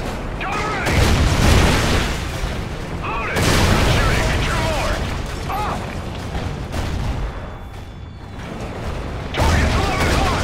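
A tank cannon fires with heavy booming blasts.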